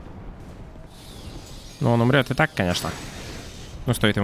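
Electricity crackles along a sword.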